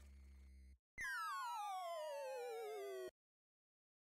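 An electronic tone slides steadily downward.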